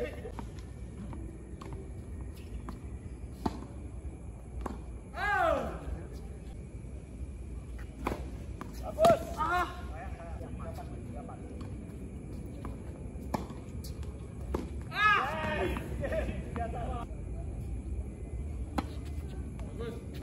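Tennis balls are struck with rackets in a rally, with sharp pops.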